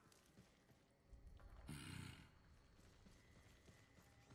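Footsteps crunch softly on dirt.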